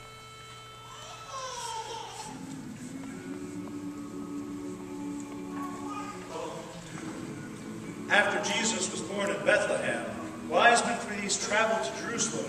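A male choir sings together in a large echoing hall.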